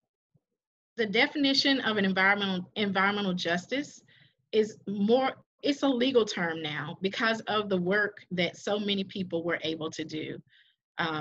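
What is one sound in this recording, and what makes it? A woman speaks steadily through an online call, presenting.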